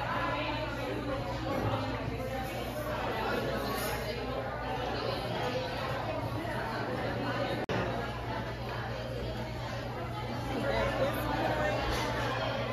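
Many men and women chatter at once in a busy, echoing room.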